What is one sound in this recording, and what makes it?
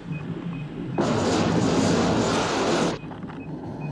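A flamethrower roars out a burst of fire.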